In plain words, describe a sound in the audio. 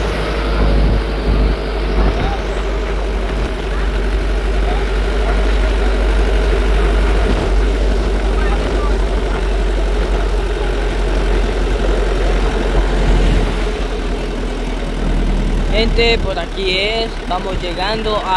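Wind roars and buffets from the open back of a moving pickup.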